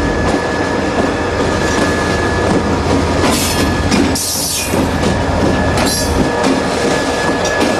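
Diesel locomotives rumble loudly as they pass close by.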